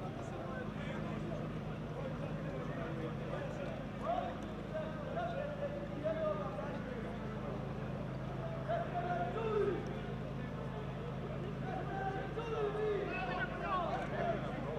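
A crowd of men and women shout and talk loudly outdoors.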